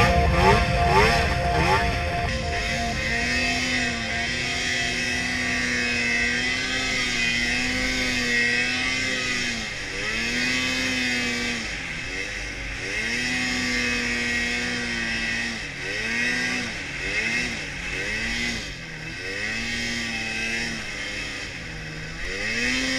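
A snowmobile engine roars close by, revving up and down.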